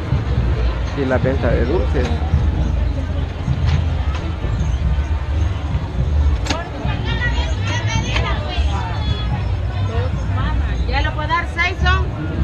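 Men and women chatter nearby in a busy outdoor crowd.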